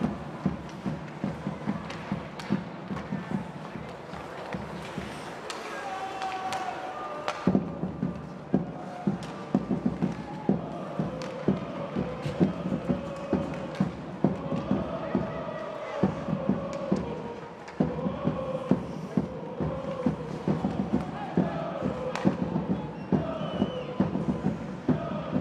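Hockey sticks clack against a puck and against each other.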